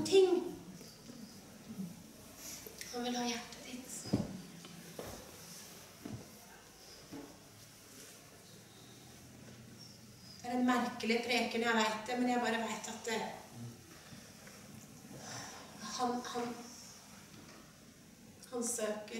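A woman speaks calmly into a microphone, with pauses, in a room with a slight echo.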